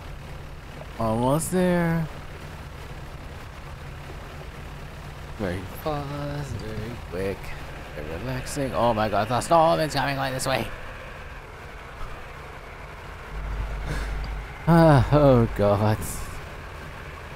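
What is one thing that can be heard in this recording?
A young woman talks with animation through a microphone.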